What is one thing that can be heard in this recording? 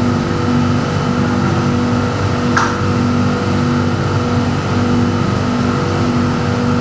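A subway train hums and rumbles steadily while running.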